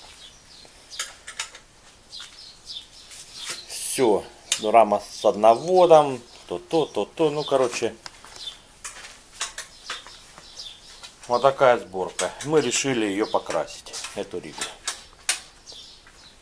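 Metal tools clink and tap against a bicycle wheel hub.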